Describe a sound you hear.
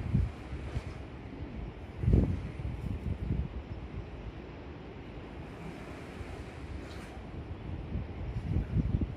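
Wind blusters against the microphone outdoors.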